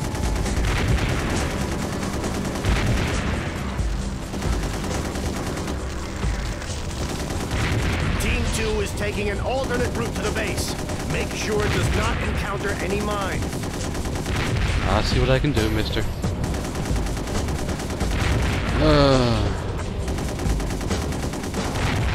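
A spacecraft's engines roar steadily.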